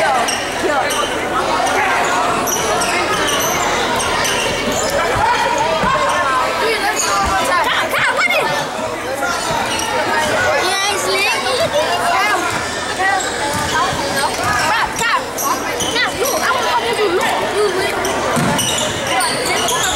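A crowd cheers and chatters loudly in an echoing gym.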